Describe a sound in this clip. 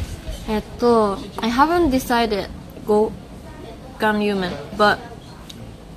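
A young woman talks close to a microphone with animation.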